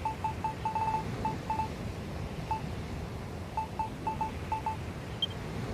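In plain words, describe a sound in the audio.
Short menu blips tick quickly as a list is scrolled.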